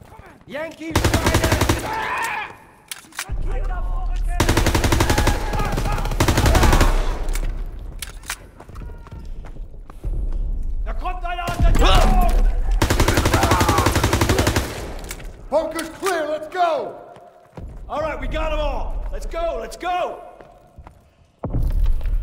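An automatic rifle fires rapid, loud bursts close by.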